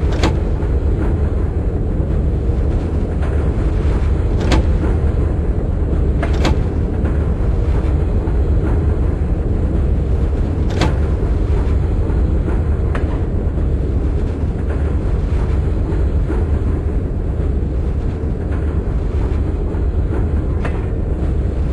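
Train wheels clack over rail joints now and then.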